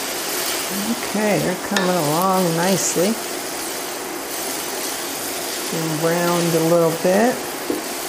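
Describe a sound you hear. A wooden spoon scrapes and stirs in a metal pan.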